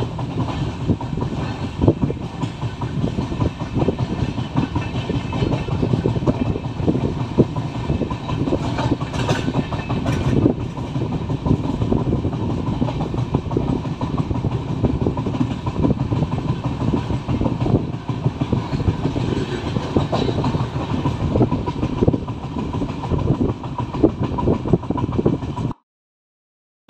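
A train rattles and rumbles steadily along the tracks, with wheels clacking over rail joints.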